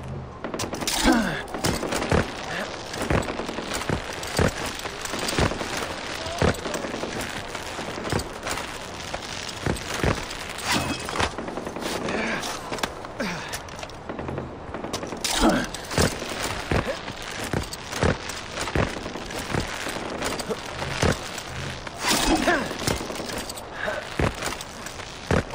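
Hands thump and scrape against rock while climbing.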